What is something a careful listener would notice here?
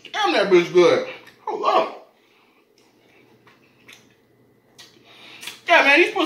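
A man chews food noisily.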